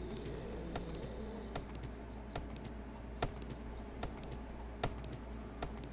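An axe chops into a tree trunk with regular thuds.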